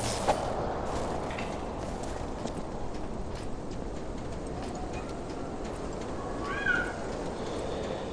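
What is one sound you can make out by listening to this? Footsteps run across a wooden roof.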